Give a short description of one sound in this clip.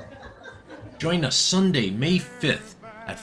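A man sings loudly.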